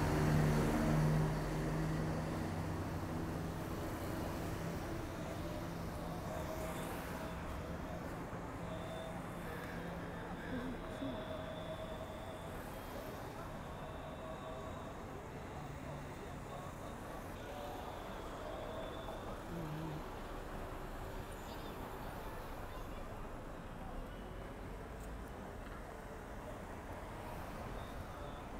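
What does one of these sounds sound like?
Car engines hum and tyres roll past on a busy street.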